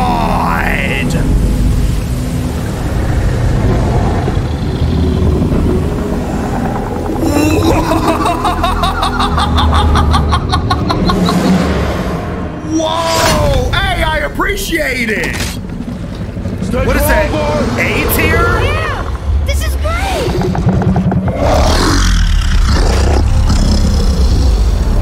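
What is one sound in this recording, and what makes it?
A man reacts loudly into a microphone, exclaiming and laughing with excitement.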